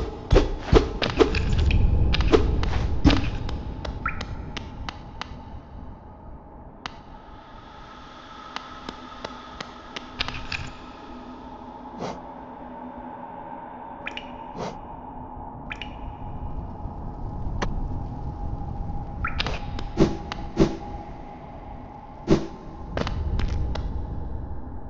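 Light footsteps patter on stone.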